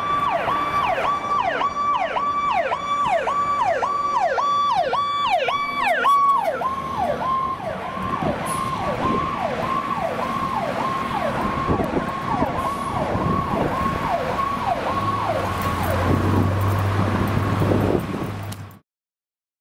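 A heavy truck engine rumbles as the truck drives by.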